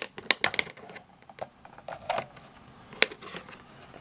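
Plastic clicks and knocks as a device is set down on a table.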